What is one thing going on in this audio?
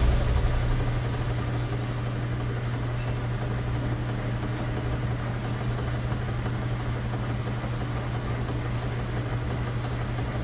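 Washing machines hum and whir steadily as their drums spin.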